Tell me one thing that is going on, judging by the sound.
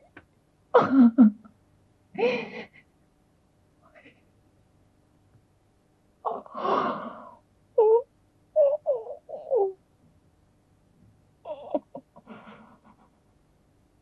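A woman sobs and wails loudly nearby.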